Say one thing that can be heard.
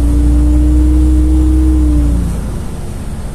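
A vehicle's engine hums steadily from inside, then drops away.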